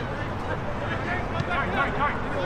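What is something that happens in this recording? Spectators chat nearby.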